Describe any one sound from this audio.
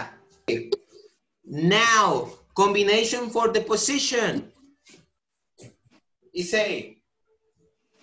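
A young man speaks with animation close to a microphone, heard over an online call.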